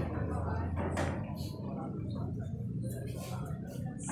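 Billiard balls clack against each other and roll across the table.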